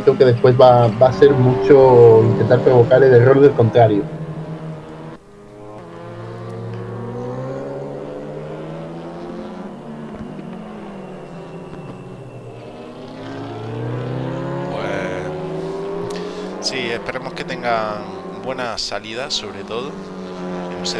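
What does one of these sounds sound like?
Racing car engines roar and rev up and down as the cars speed by.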